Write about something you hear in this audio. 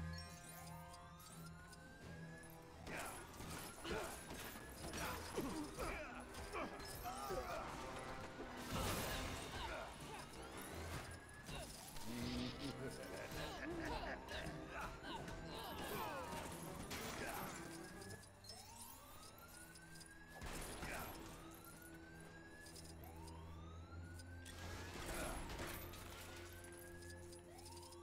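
Coins jingle as they are picked up.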